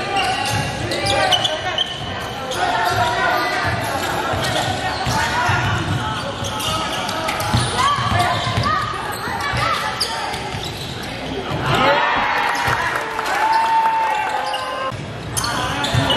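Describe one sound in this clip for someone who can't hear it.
Young men shout and a crowd chatters in an echoing indoor hall.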